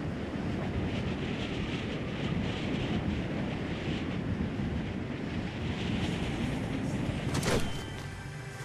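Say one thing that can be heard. Wind rushes steadily while gliding through the air.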